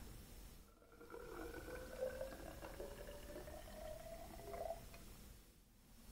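Water pours into a narrow glass cylinder with a gurgle that slowly rises in pitch.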